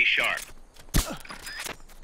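A gunshot cracks once.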